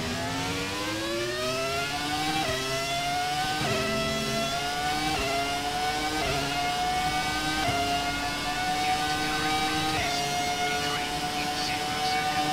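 A racing car engine screams loudly, rising in pitch and dropping briefly with each gear change.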